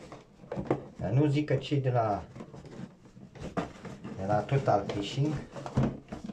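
A plastic case knocks and rattles inside a cardboard box.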